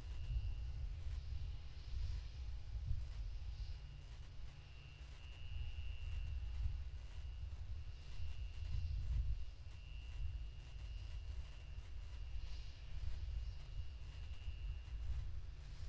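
A distant rocket engine rumbles deeply and steadily.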